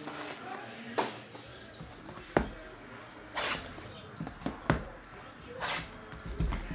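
Cardboard boxes tap and knock on a table.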